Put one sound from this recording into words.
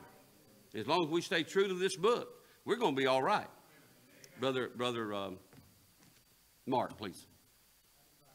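A man speaks with animation through a microphone in a hall with a slight echo.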